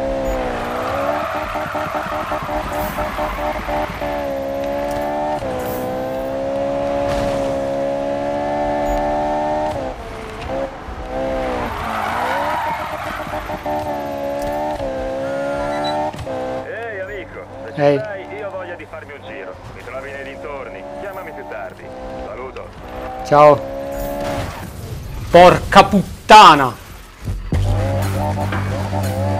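A racing car engine roars and revs steadily.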